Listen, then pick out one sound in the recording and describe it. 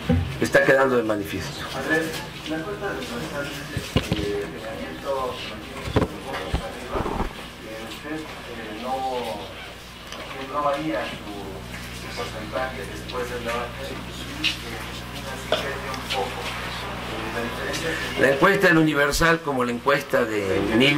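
A middle-aged man speaks calmly and deliberately into a microphone.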